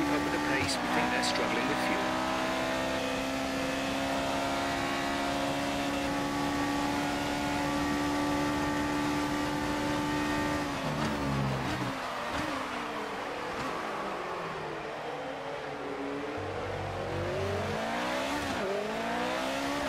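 A racing car engine roars at high revs, then drops and rises in pitch through gear changes.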